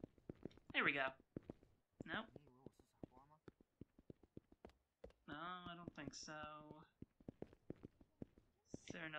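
Footsteps hurry across a hard floor and up stairs.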